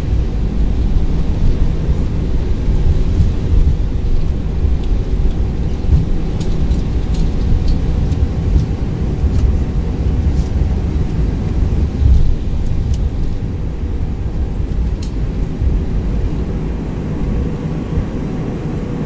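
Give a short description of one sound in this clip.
Jet engines roar with a steady low rumble.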